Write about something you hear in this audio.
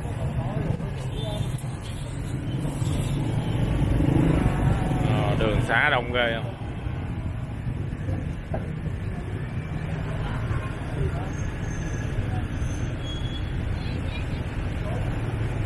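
Motorbike engines hum and buzz nearby in busy street traffic.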